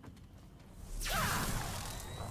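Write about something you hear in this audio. Sparks burst with a loud crackling hiss.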